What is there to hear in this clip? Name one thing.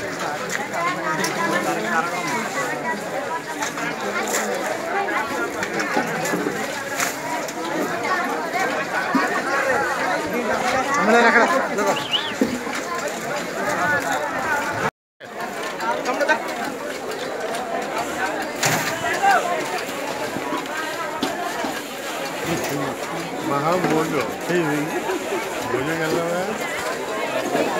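A crowd of men talks and shouts loudly nearby.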